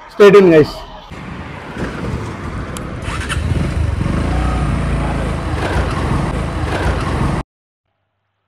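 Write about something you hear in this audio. A motorcycle engine runs steadily as the bike rides along.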